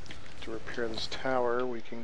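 Boots clank on a metal ladder.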